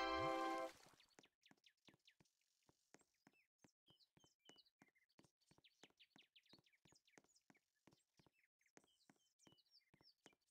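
Quick, light footsteps patter steadily on the ground.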